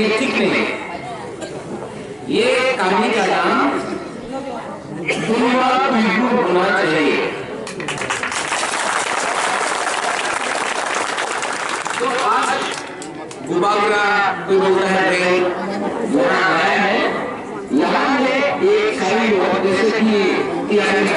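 A man speaks with animation into a microphone, heard through loudspeakers outdoors.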